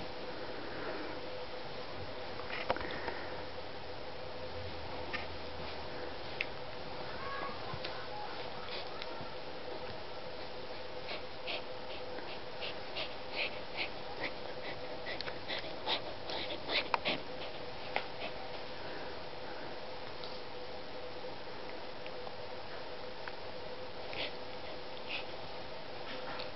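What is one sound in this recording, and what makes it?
Bed sheets rustle as a cat and a dog wrestle.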